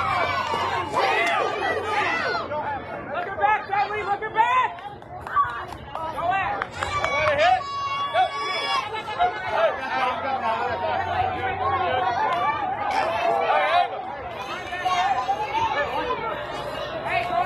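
Young girls shout and cheer outdoors.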